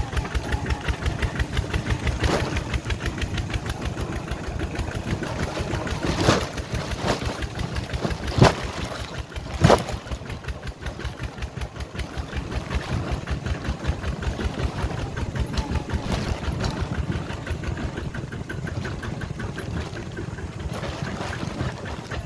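Wheels rattle and bump over a rough dirt track.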